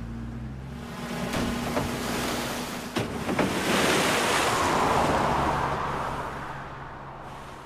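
Tyres splash through mud and water.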